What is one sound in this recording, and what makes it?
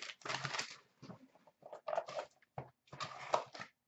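A cardboard box is handled and tapped against a glass shelf.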